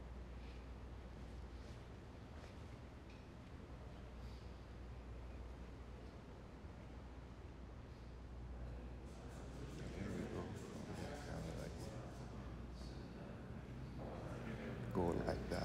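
A man's footsteps tap on a hard floor.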